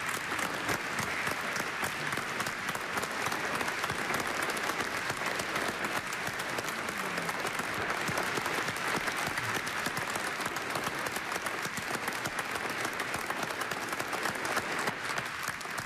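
A large crowd applauds steadily in a large echoing hall.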